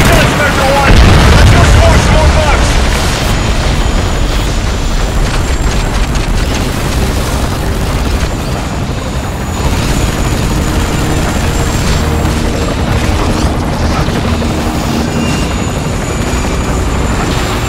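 A huge explosion roars and rumbles.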